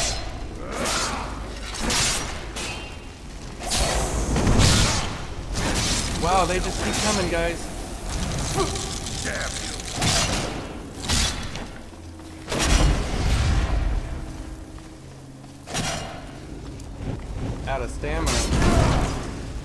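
Magic fire whooshes and crackles.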